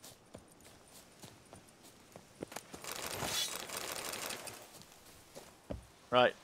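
Footsteps crunch on a dirt path at a steady walking pace.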